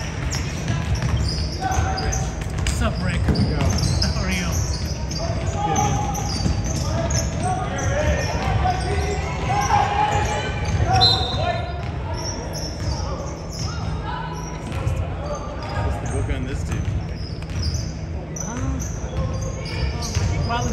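Young players call out across an echoing gym.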